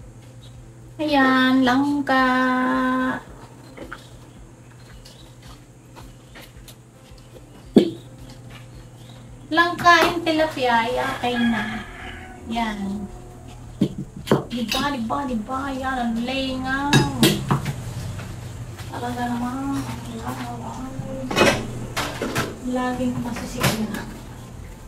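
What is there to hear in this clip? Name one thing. A woman speaks with animation close by.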